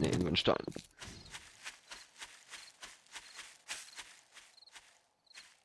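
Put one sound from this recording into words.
Footsteps rustle steadily through tall grass.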